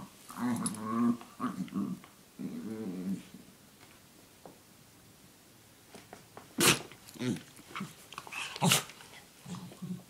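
A small dog squirms and rubs against soft bedding, rustling it.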